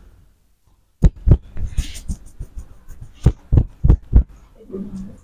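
Hands tap and slap a man's head with sharp, quick smacks.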